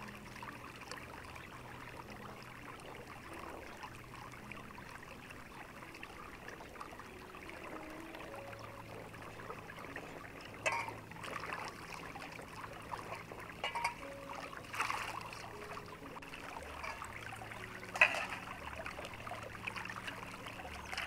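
A stream of water trickles and gurgles steadily.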